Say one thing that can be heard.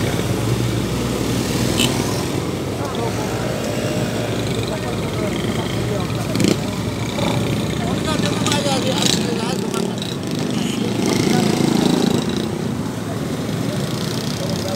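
Motorcycle engines putter and rev as they pass close by.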